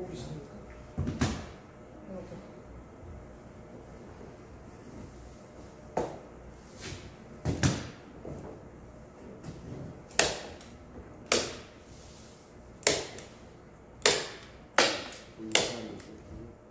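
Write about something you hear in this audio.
Sharp taps and knocks sound on wood.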